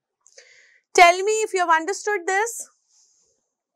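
A woman speaks with animation into a close microphone.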